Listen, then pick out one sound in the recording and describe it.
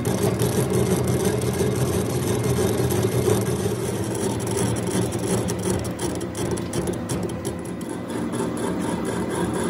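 A metal lathe hums and whirs steadily as a part spins.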